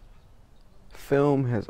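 A young man raps loudly.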